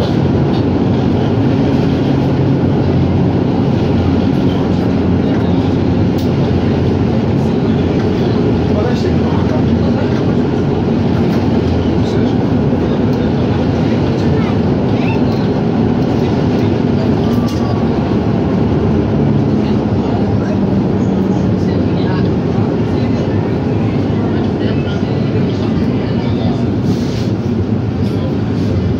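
The tram body rattles and clatters as it rolls along.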